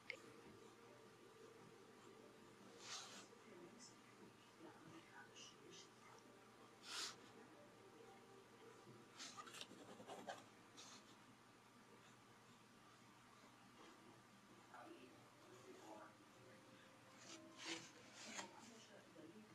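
A pen scratches softly across paper.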